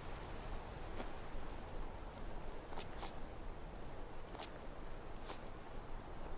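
Footsteps crunch over rock and undergrowth.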